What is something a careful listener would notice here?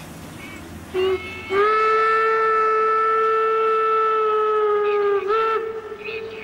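A steam whistle blows loud and long.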